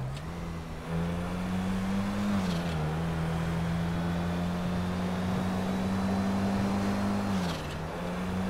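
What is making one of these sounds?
A car engine hums steadily and shifts pitch as the car speeds along a road.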